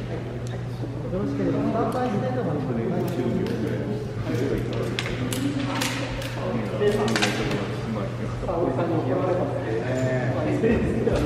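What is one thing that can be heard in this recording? A woman speaks calmly nearby in an echoing hall.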